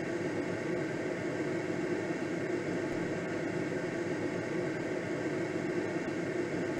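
Wind rushes steadily past a gliding aircraft's cockpit.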